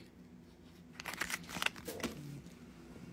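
Fingers handle and tap a small cardboard box.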